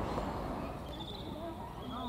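A large owl flaps its wings.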